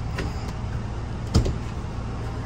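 A hand pats a padded seat back.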